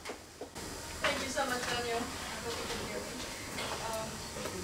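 A woman speaks through a microphone over loudspeakers.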